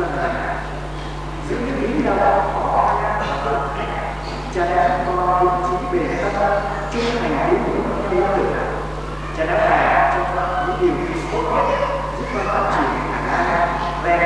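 A young man sings slowly into a microphone, heard through loudspeakers.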